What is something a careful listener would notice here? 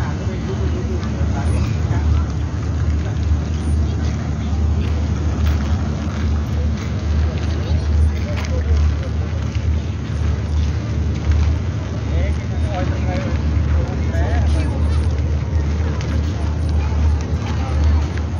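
A crowd of people chatters outdoors nearby.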